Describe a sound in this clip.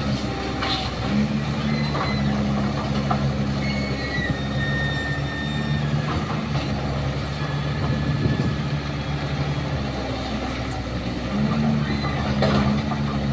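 A diesel excavator engine rumbles steadily close by, rising and falling as it works.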